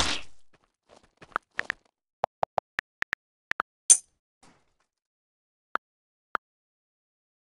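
Phone keyboard keys click as text is typed.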